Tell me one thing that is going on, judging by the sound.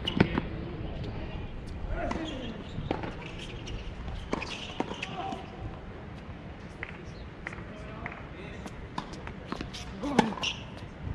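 Tennis shoes scuff and squeak on a hard court.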